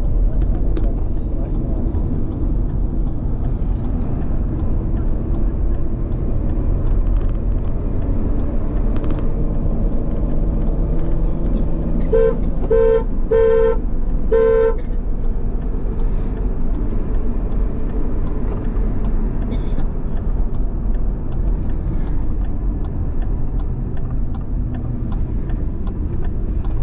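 Tyres rumble on a rough road.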